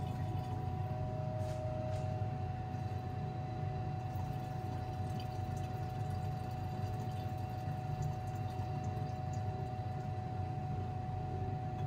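Liquid trickles as it is poured into a glass flask.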